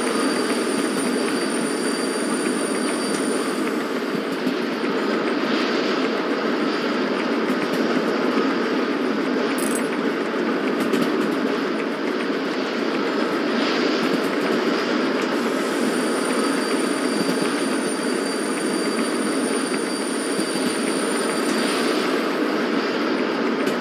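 A steam locomotive chugs and rumbles steadily along the track.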